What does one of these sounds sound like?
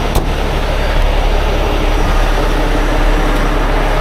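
A metal compartment door on a truck clicks open.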